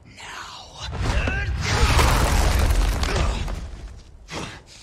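A creature roars loudly.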